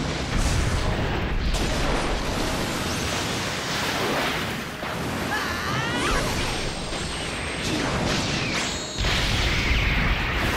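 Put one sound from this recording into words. A huge energy blast roars and rumbles.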